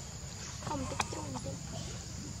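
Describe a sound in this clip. A baby monkey gives a few high, squeaky calls close by.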